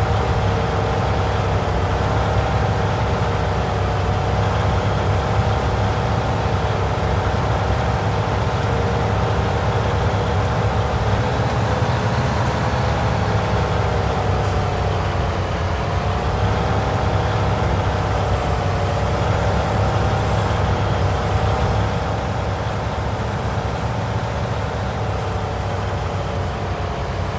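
A tractor engine drones steadily, its pitch rising and falling with speed.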